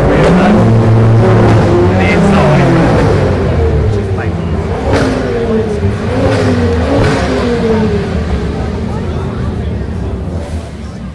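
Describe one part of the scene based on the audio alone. A crowd of adults chats outdoors.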